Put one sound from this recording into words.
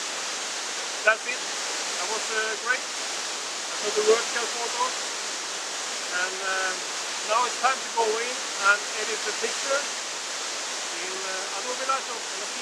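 A middle-aged man talks calmly, close by.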